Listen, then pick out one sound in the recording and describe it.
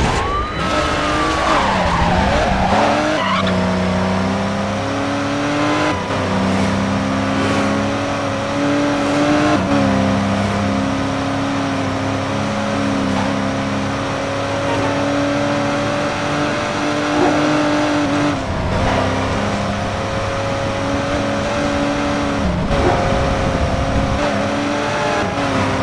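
A car engine roars steadily at high revs, shifting pitch with gear changes.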